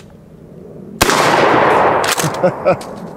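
A shotgun fires a single loud blast that echoes through the woods.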